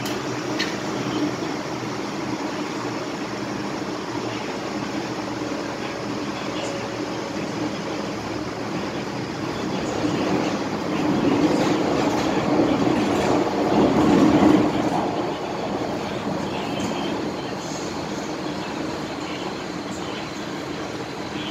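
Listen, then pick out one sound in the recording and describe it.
A train rumbles steadily along the tracks, louder for a while in the middle.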